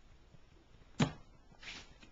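A small box is set down with a soft thud.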